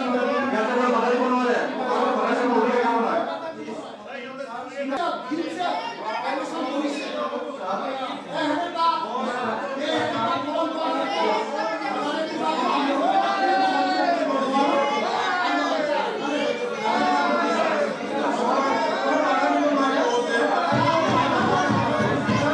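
A crowd of men and women shout in protest in a large echoing hall.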